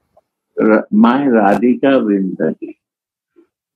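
An elderly man speaks calmly and slowly, close to the microphone, as if over an online call.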